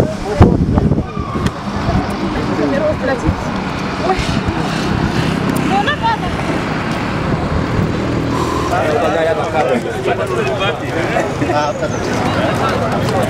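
Boots tramp on a paved road as a large group marches.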